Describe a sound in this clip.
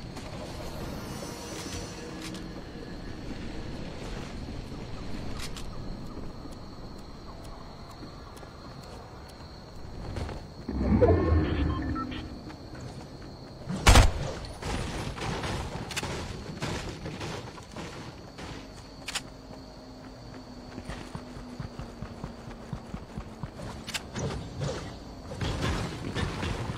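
Quick footsteps patter over the ground.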